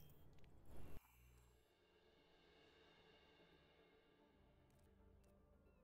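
Soft menu music plays.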